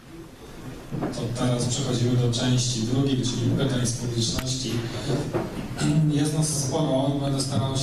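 A young man speaks calmly through a microphone and loudspeakers.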